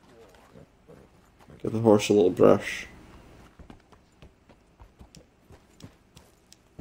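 A horse's hooves clop steadily on gravel.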